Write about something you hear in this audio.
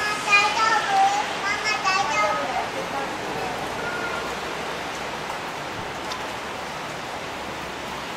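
A steady murmur of people fills a covered street with a soft echo.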